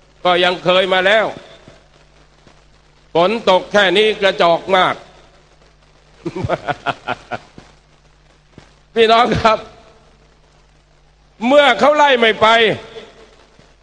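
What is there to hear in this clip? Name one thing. A man speaks forcefully into a microphone over loudspeakers, in bursts with pauses.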